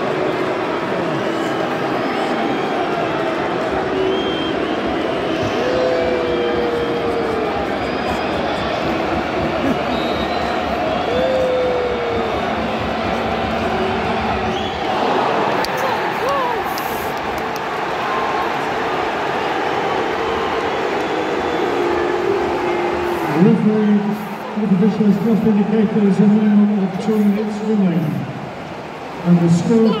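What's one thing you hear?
A large football crowd murmurs and shouts in an open-air stadium.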